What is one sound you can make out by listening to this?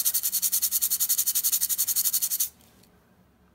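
A stiff brush scrubs rapidly against a hard dish.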